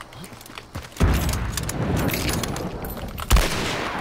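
A rifle is handled with metallic clicks and clatter.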